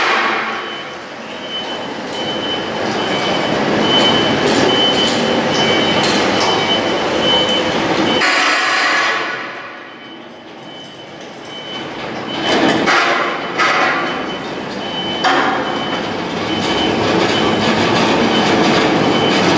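A forklift engine rumbles steadily as it pushes a heavy machine along.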